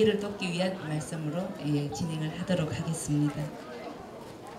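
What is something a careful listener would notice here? A middle-aged woman speaks calmly through a microphone and loudspeaker, outdoors.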